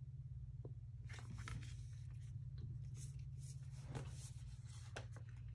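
A stiff card slides and taps softly on a table.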